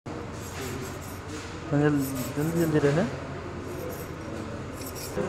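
Small pieces of wood knock together.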